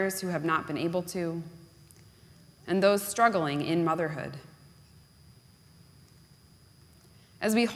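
A woman reads aloud calmly through a microphone in a large echoing hall.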